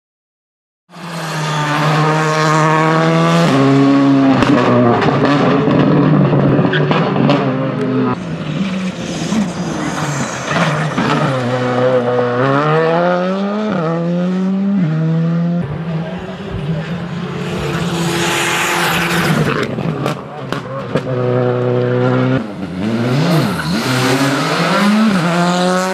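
A rally car engine roars loudly, revving up and down as the car races past.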